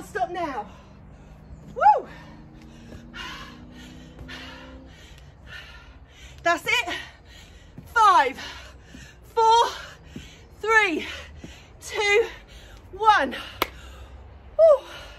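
A young woman breathes hard in quick puffs close by.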